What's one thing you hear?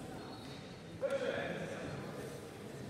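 A man calls out a short loud command in an echoing hall.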